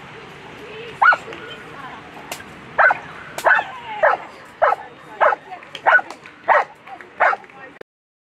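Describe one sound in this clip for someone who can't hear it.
A dog barks sharply several times.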